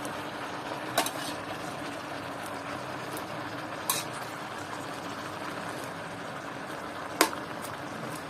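A metal spatula clinks and scrapes against a pan.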